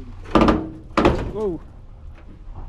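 An old truck door creaks loudly on rusty hinges as it swings open.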